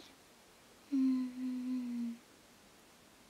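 A young woman hums briefly.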